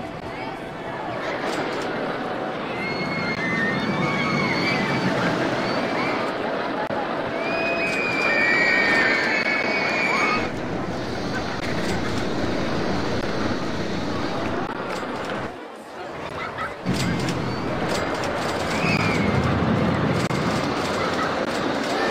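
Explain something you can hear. A roller coaster train rumbles and clatters along a wooden track.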